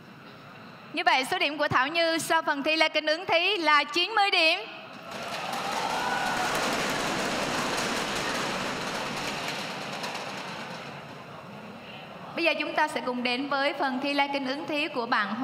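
A young woman speaks clearly and brightly into a microphone.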